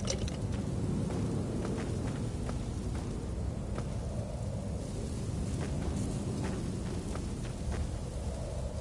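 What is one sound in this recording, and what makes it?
Footsteps crunch through grass and undergrowth.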